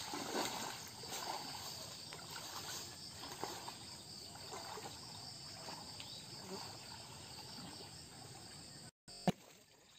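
Water splashes as a man wades through a pond.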